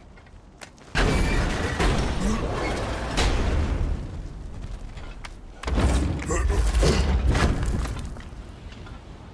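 A heavy chest creaks and thuds open.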